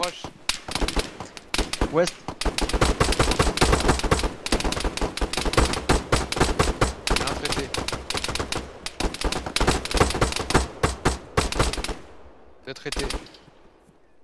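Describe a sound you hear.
Rapid gunfire rattles in dense bursts.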